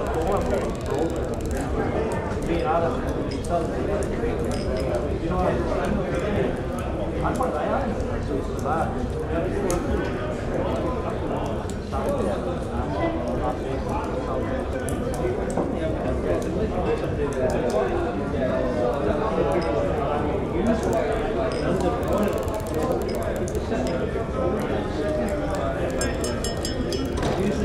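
Mugs clink now and then.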